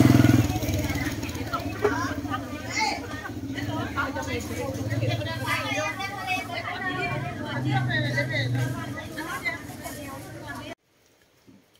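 Several women chatter nearby.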